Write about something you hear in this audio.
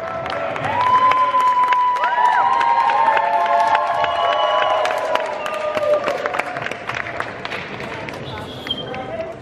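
An audience cheers and whistles loudly in a large hall.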